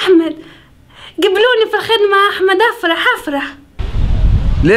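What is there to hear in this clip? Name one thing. A young woman talks on a phone.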